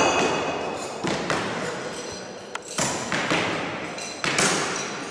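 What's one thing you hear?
Thrown knives thud sharply into a wooden target, one after another.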